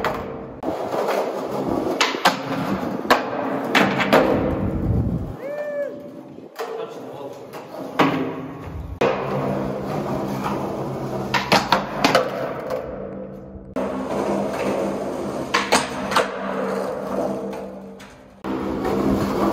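Skateboard wheels roll over concrete with a rough, rumbling hiss.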